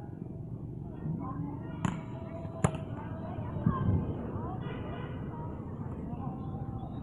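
Young men shout and call out to each other at a distance outdoors.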